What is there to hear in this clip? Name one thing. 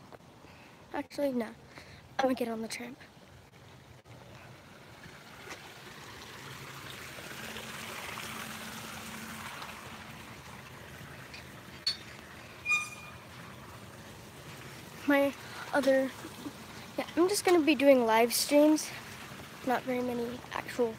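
A young girl talks close up, with animation.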